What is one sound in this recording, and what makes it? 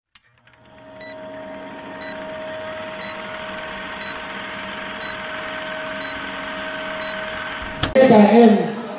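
A film countdown beeps once each second.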